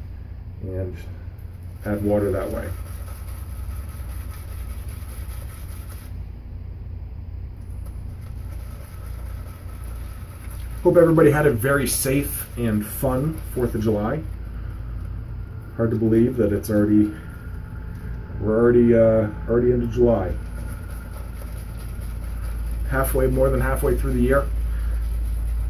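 A shaving brush swirls and whisks lather in a bowl.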